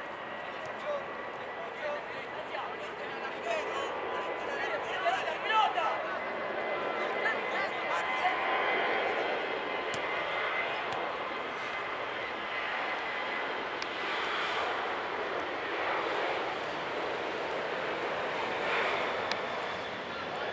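Young men call out to each other across an outdoor pitch.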